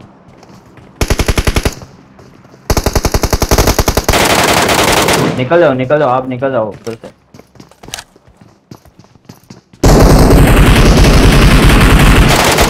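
Rapid gunfire rattles close by in bursts.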